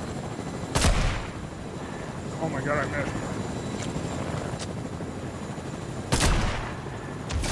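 A sniper rifle fires with a sharp, loud crack.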